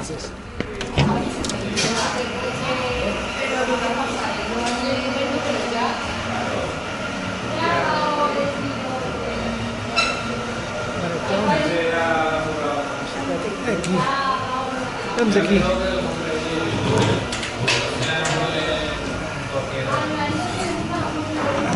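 Several people chatter in the background of an indoor room.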